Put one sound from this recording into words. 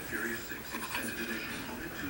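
A cat's paws pad softly across a wooden floor.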